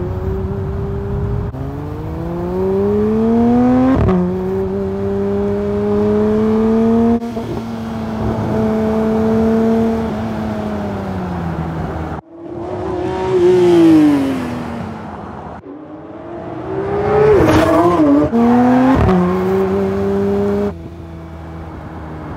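A sports car engine roars loudly, revving up and shifting gears.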